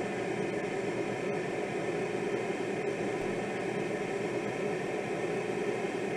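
Wind rushes steadily past a glider's cockpit.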